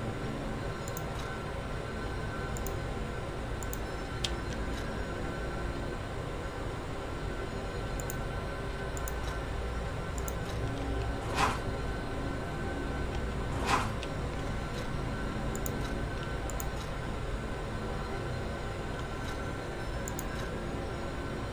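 Soft menu clicks sound as selections change.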